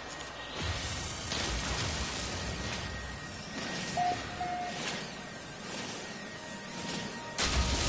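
A mining beam hums steadily.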